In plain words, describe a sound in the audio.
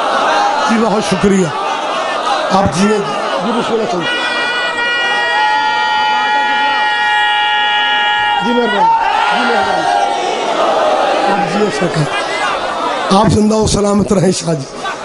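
A man speaks forcefully into a microphone over a loudspeaker, in a large reverberant space.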